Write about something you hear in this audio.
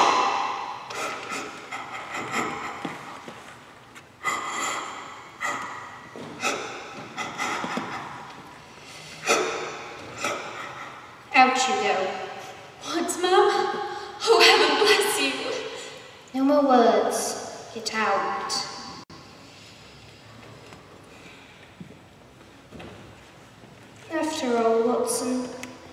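Young people speak with animation, heard from across an echoing hall.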